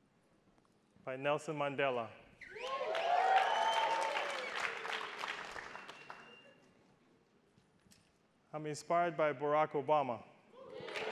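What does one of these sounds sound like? A man speaks loudly and with emphasis through a microphone in a large hall.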